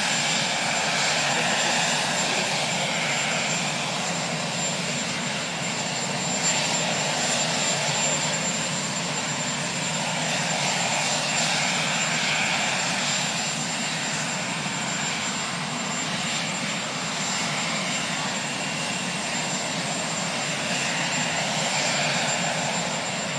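A helicopter engine whines and hums steadily nearby.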